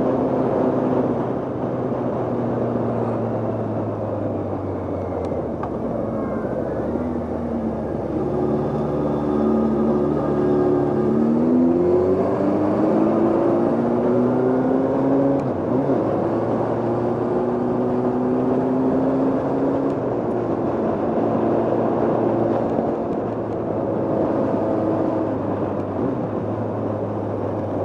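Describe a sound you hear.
A motorcycle engine hums steadily, its pitch rising and falling with the gears.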